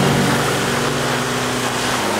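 Tyres spin and churn through wet mud.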